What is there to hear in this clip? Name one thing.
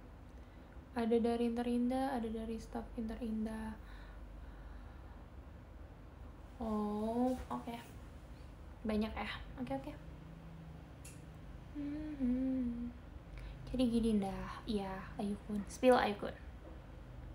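A young woman talks casually close to a microphone, in short bursts with pauses.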